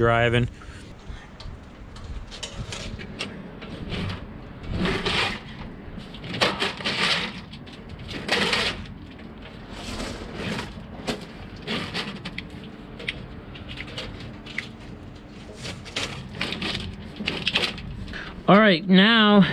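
Rubber cables rustle and scrape against metal.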